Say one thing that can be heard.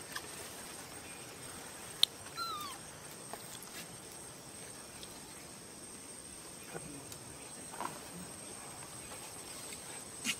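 A baby monkey gives short, high squeaks.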